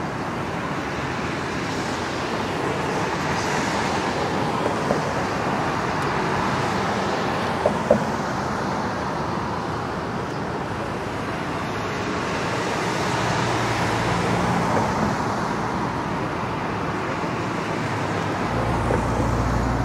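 Cars drive past on a nearby street.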